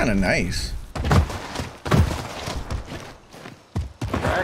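Footsteps thud on a dirt path.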